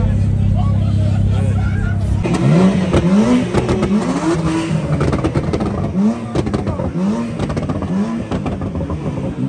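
A large crowd talks and shouts outdoors.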